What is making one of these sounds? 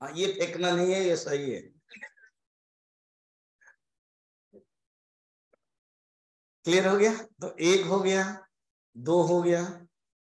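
An elderly man speaks calmly and expressively into a close microphone, pausing between phrases.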